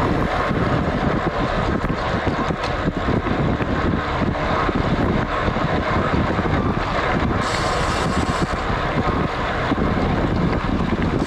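Road bike tyres hum on asphalt.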